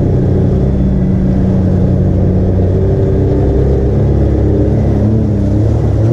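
Water splashes under the tyres.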